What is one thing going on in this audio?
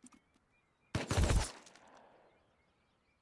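A gunshot bangs close by.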